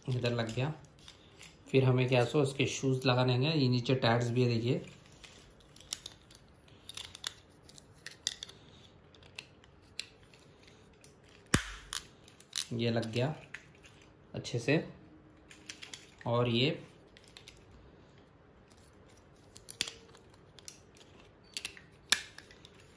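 Plastic battery covers click and snap into place.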